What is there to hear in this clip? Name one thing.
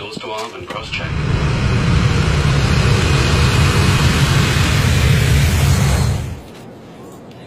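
Jet engines roar loudly as an airliner takes off.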